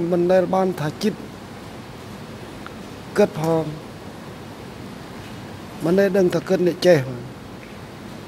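An older man speaks calmly into a microphone, in short bursts with pauses.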